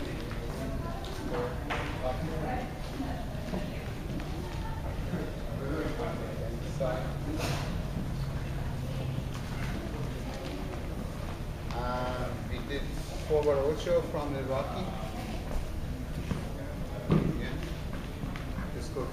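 Shoes shuffle and tap on a wooden floor.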